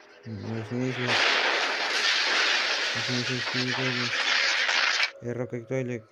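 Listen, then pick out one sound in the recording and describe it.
An explosion booms and fire roars.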